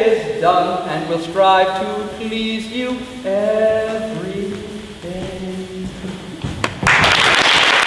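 A woman sings into a microphone in a large echoing hall.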